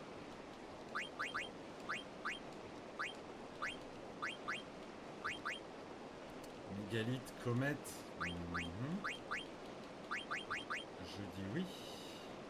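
Short electronic menu blips sound in quick runs.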